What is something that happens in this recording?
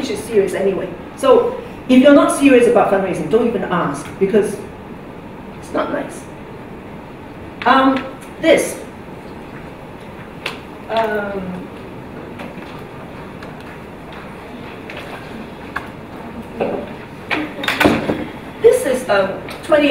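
A woman speaks calmly through a microphone in a room with slight echo.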